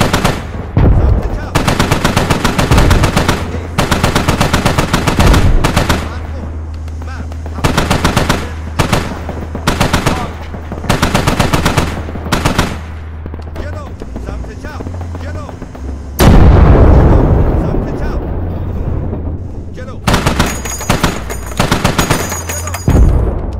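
A heavy cannon fires in rapid bursts.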